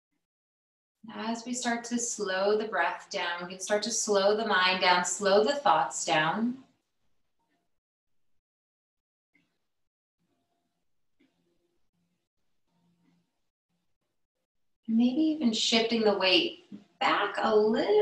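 A woman speaks calmly and softly through a microphone, as if on an online call.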